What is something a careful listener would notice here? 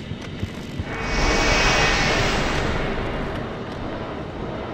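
An explosion roars and slowly fades.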